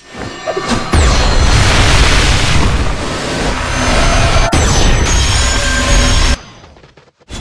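A loud magical blast roars and rumbles.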